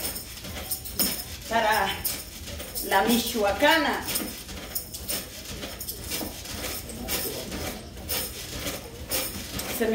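A small trampoline creaks and thumps as a woman bounces on it.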